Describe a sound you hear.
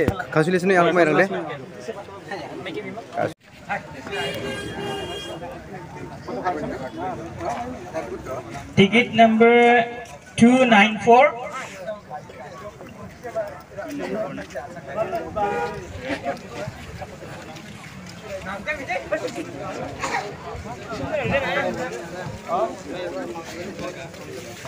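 Men talk and call out nearby in an outdoor crowd.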